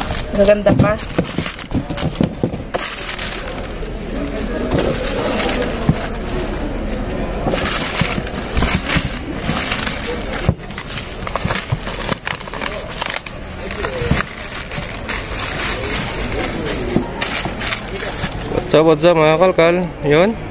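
Plastic bags rustle and crinkle as food is sorted in a bin.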